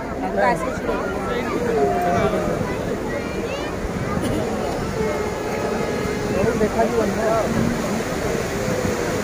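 Waves wash and break on a shore.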